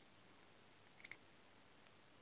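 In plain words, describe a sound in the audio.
A small plastic plug clicks into a connector.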